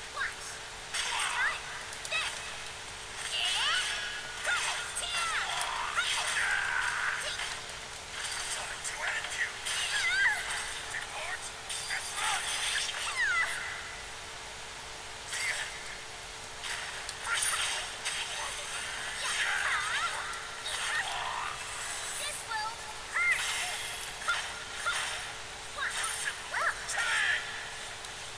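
Fighters grunt and shout as blows land.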